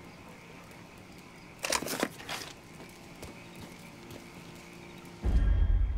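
A fire crackles in a barrel.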